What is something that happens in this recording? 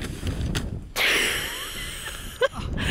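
A person tumbles heavily into the snow.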